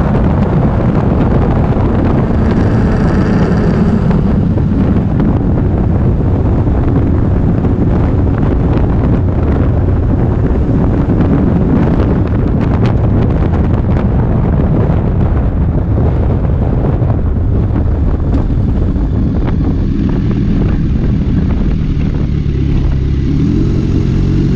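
A motorcycle engine drones steadily as it rides along a road.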